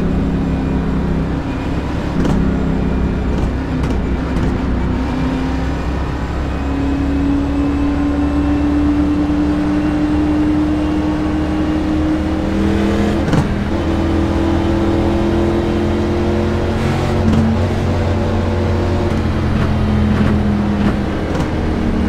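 A race car engine drones steadily at high speed, rising slowly in pitch.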